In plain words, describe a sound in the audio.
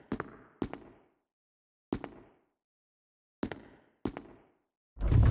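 Footsteps echo on a hard floor in a hallway.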